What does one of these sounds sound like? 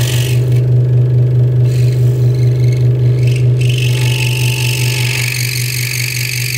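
A scroll saw hums and buzzes steadily as its blade chatters through wood.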